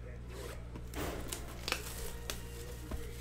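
Plastic wrap crinkles as it is torn off a box.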